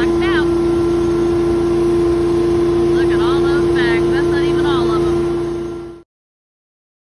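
A machine engine drones steadily up close.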